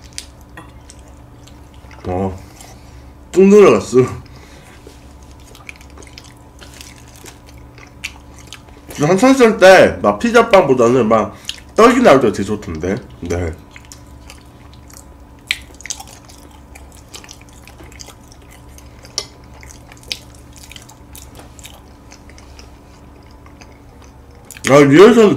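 A young man chews food with soft smacking sounds.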